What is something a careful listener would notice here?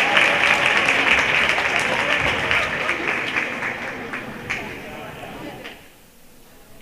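Basketballs bounce on a hardwood floor in an echoing gym.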